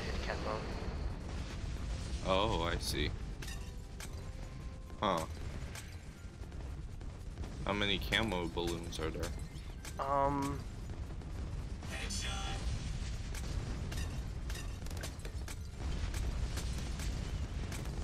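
Game explosions burst and pop repeatedly.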